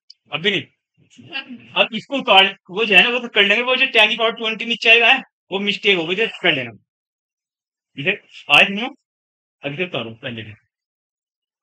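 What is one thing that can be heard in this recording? A man lectures calmly, close by.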